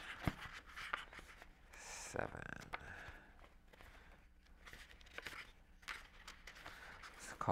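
A middle-aged man reads aloud calmly into a microphone.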